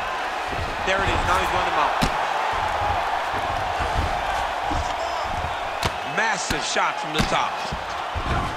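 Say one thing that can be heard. Bodies thud and scuffle against a padded mat.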